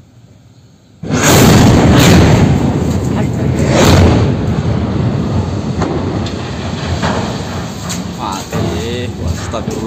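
A large fire roars with a loud, rough rumble outdoors.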